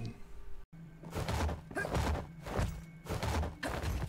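Footsteps echo in a slow, even rhythm.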